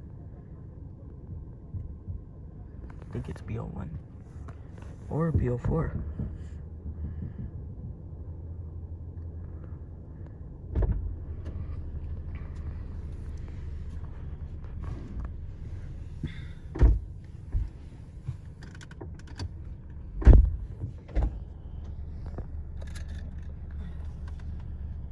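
A car engine hums low and steadily from inside the car.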